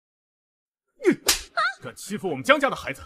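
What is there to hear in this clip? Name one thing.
A young man speaks angrily up close.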